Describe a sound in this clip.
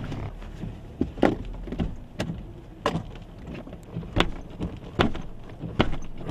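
Raindrops tap and knock against a car windshield.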